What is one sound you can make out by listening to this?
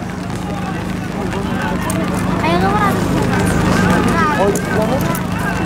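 Many horses' hooves thud on dirt ground.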